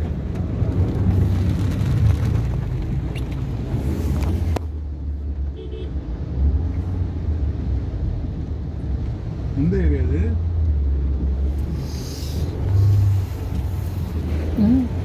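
Rain patters on a car's windows and roof.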